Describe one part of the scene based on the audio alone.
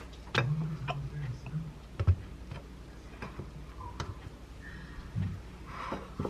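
Bread and fillings are handled and set down on a plate with soft taps and rustles.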